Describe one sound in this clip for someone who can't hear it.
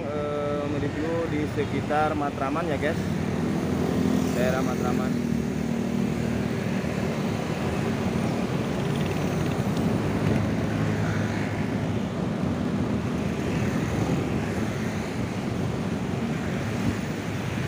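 Motorbikes and traffic rumble steadily past on a road outdoors.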